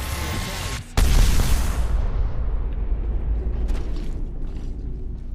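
Wind rushes loudly past a game character flying through the air.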